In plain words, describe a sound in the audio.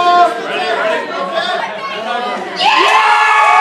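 A crowd of people chatters and calls out nearby.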